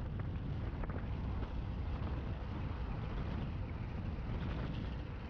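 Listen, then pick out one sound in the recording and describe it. Wind rumbles steadily against the microphone while moving outdoors.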